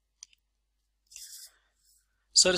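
A sheet of paper slides softly across a table.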